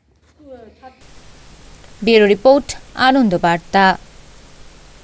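A woman reads out aloud.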